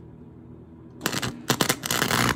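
A welding arc crackles and sizzles loudly.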